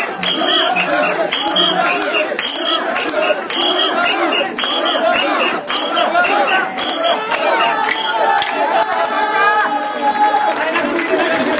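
A large crowd of men chants loudly in a steady rhythm close by.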